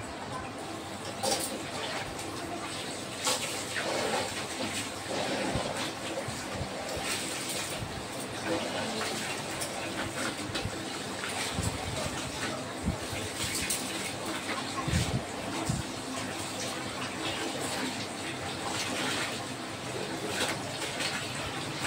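Water runs steadily from a tap into a metal basin.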